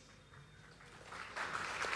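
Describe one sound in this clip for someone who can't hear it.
A large crowd laughs and murmurs in an echoing hall.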